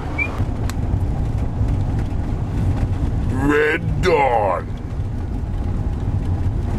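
A car engine rumbles steadily from inside the moving car.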